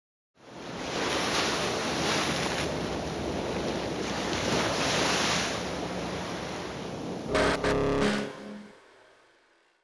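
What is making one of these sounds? Ocean surf churns and roars loudly.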